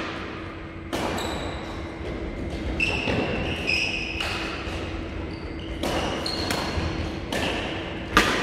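Shoes squeak on a hard court floor.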